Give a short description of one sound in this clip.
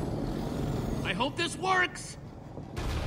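A young man speaks anxiously.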